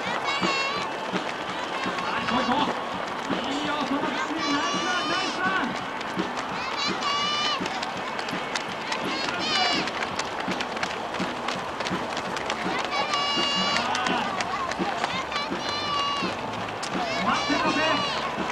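People nearby shout and cheer encouragement outdoors.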